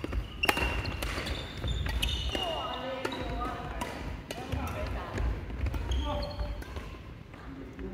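Shoes squeak on a wooden floor in a large echoing hall.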